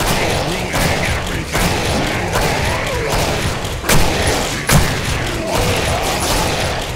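A monster snarls and shrieks up close.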